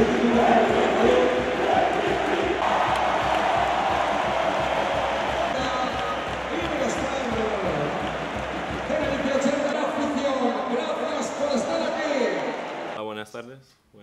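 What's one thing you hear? A large crowd cheers loudly in an echoing arena.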